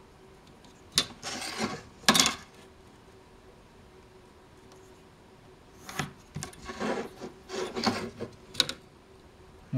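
A knife scrapes along a board in short strokes.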